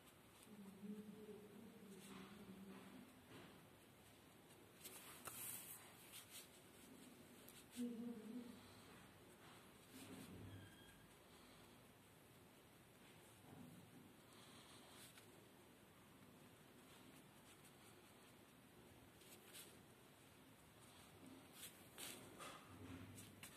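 Small parts click and rustle softly as a hand handles them close by.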